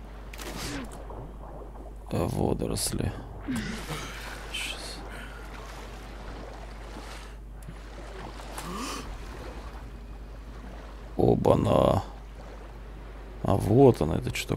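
Water sloshes and splashes as a swimmer strokes through it.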